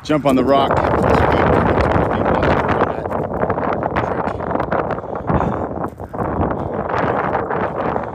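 A dog's paws patter on gravel.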